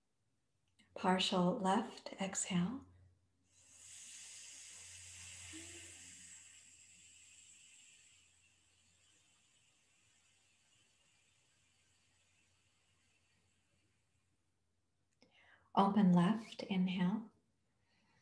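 A woman speaks calmly, close by.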